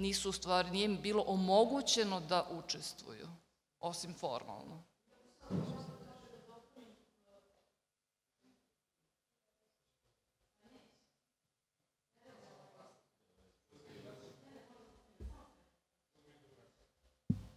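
A middle-aged woman speaks calmly into a microphone, in pauses.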